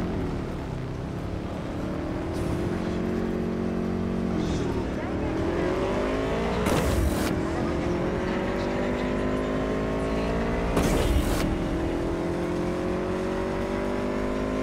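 A motorcycle engine hums steadily and rises in pitch as it speeds up, dropping briefly as it shifts gears.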